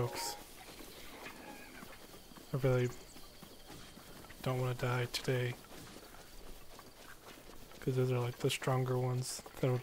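Quick footsteps rustle through tall grass.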